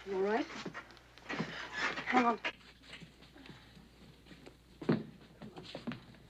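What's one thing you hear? Men scuffle and grunt as they struggle.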